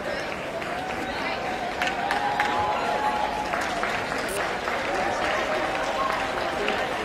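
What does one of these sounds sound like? A crowd murmurs and chatters in a large, echoing space.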